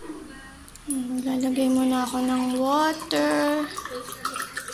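Water pours from a bottle into a metal pot.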